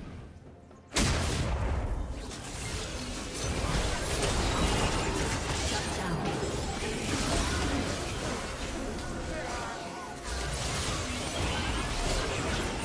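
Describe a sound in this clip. Video game spells whoosh and explode during a fast battle.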